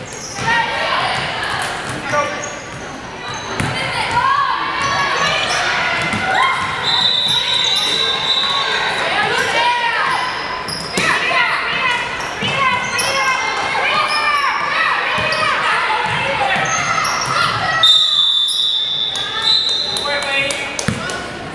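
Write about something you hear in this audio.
Young women players call out and shout across an echoing gym.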